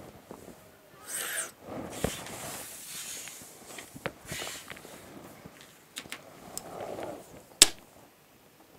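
A metal ruler slides and taps on paper.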